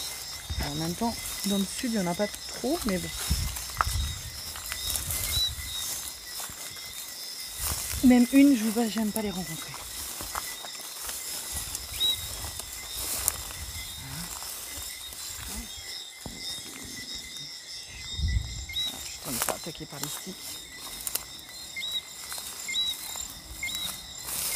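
Tall grass rustles and swishes as someone pushes through it.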